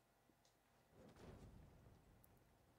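A fire crackles and roars close by.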